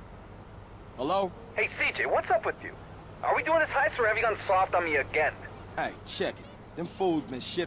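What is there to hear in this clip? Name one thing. A man speaks over a phone.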